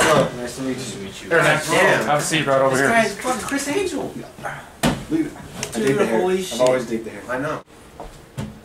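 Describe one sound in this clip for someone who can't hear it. A young man talks loudly and with animation close by.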